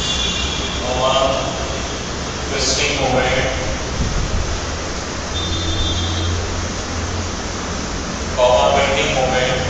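A man speaks calmly through a headset microphone.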